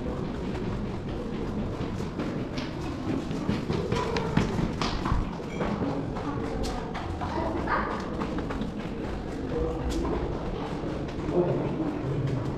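Footsteps climb concrete stairs in an echoing stairwell.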